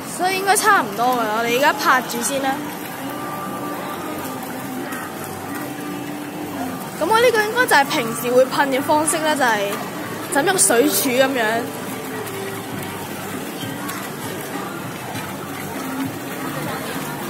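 Fountain jets splash steadily into a pool.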